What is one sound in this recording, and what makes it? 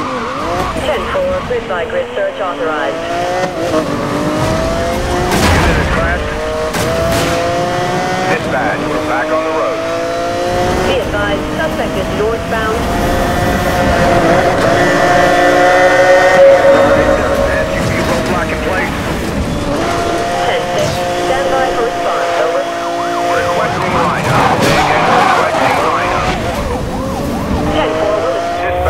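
A racing car engine roars and revs up through the gears.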